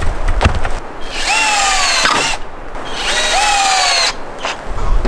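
A cordless drill whirs as it drives screws into wood.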